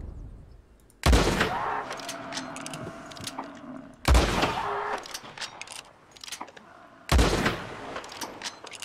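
Rifle shots ring out one at a time, each followed by a rolling echo.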